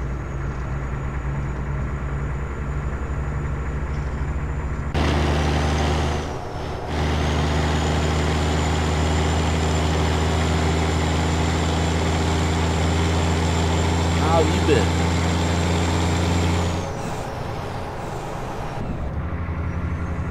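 A truck's diesel engine drones steadily.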